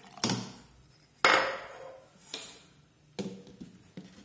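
A glass lid clinks against a metal pot.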